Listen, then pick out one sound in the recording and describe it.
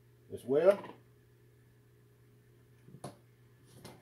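A lump of butter drops into a pan with a soft thud.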